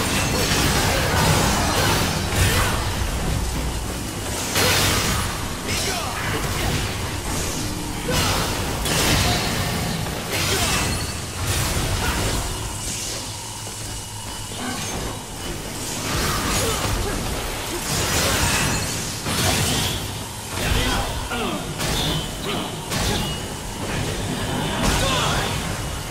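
Sword slashes and heavy impacts clash in quick bursts.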